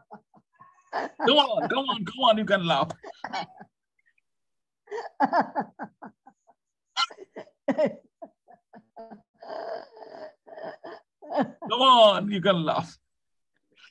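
An elderly woman laughs heartily over an online call.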